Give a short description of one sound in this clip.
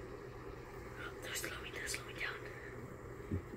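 A young boy speaks quietly, close by.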